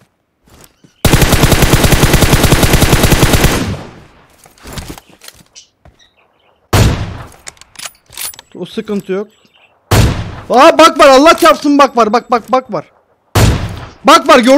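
Rapid gunfire rattles in a long burst, followed by single loud shots.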